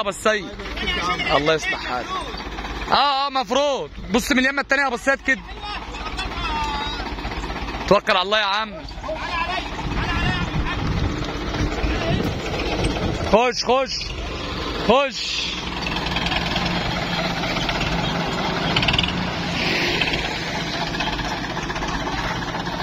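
A tractor engine runs with a steady rumble.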